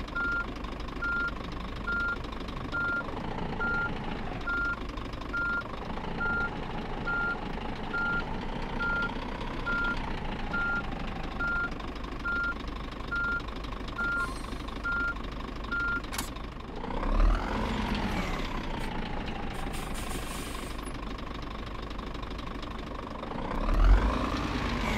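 A diesel truck engine rumbles as the truck creeps along slowly.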